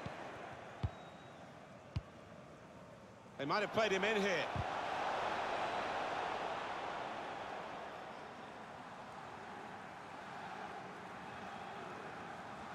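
A stadium crowd cheers and murmurs.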